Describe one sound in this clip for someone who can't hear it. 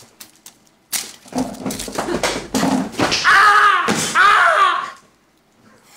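A young man shrieks and laughs loudly.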